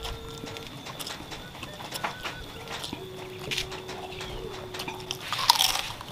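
A young man chews and smacks his lips wetly.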